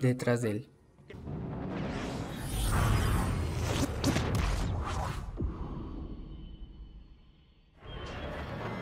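A spacecraft rushes past with a loud whooshing roar.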